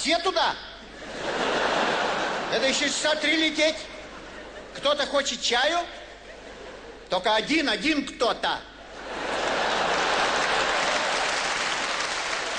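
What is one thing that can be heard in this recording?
An audience laughs loudly in a large hall.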